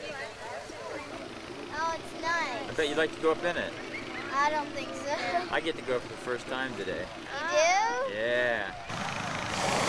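Young girls talk and giggle close by.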